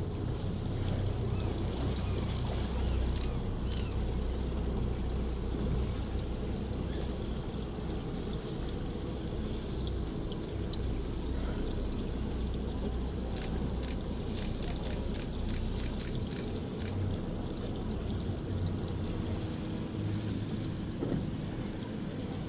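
Small waves lap softly on open water.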